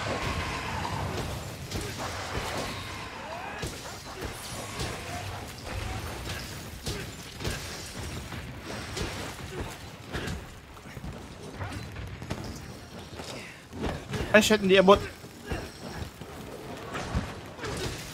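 Heavy blades slash and thud in rapid strikes.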